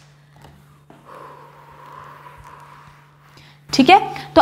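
A felt eraser wipes across a whiteboard with a soft rubbing sound.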